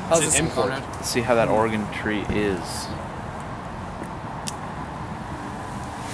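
Fir branches rustle as a hand pushes through them.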